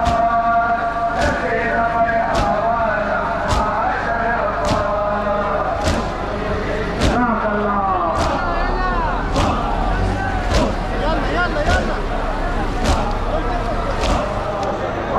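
Many men beat their chests together in a slow, steady rhythm.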